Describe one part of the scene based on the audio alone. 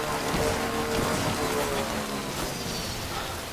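A motorbike engine hums and slows down.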